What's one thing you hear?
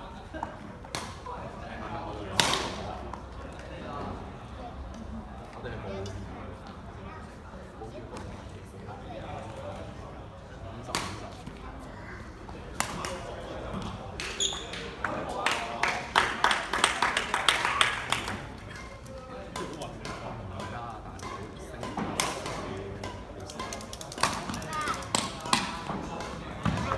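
Shuttlecocks are struck with rackets in sharp pops, in a large echoing hall.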